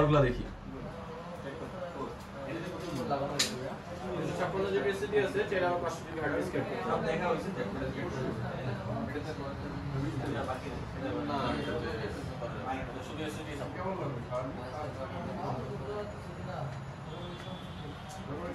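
Several young men talk over one another.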